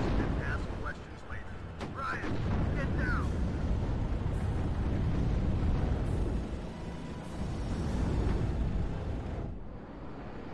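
Explosions rumble low and heavy in the distance.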